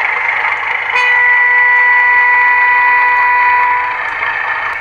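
A model locomotive horn sounds a long steady blast.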